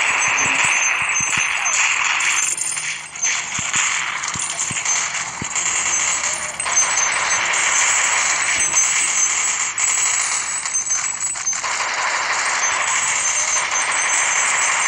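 Cartoon gunfire rattles rapidly.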